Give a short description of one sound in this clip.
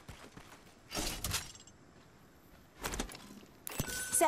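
A metal supply bin bangs open.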